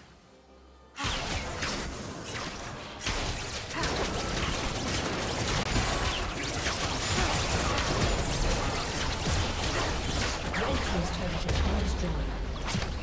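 Spell effects and weapon hits crash and clatter in a busy game battle.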